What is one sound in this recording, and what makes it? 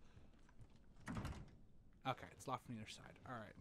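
A locked door handle rattles and knocks.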